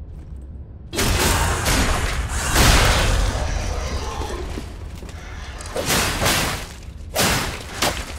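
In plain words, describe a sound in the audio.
A sword slashes and strikes with metallic clangs.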